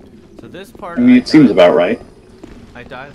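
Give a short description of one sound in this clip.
A man speaks loudly into a close microphone.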